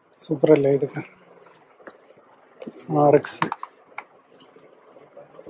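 Stiff paper boards rustle and tap as they are handled.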